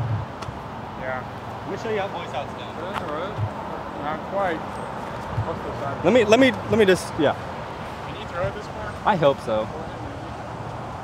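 Several men cheer and talk excitedly outdoors.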